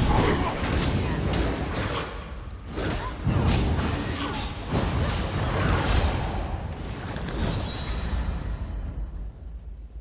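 Swords clash and spells crackle in a fight.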